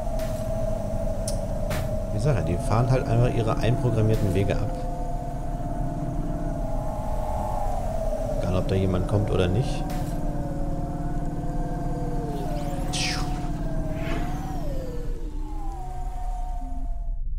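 A car engine hums steadily as it speeds along.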